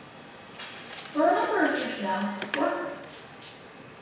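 A young girl speaks briefly in a room.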